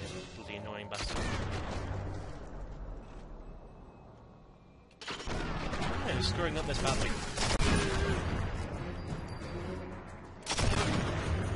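A rifle fires a loud shot that echoes.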